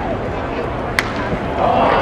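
A baseball bat cracks sharply on a ball.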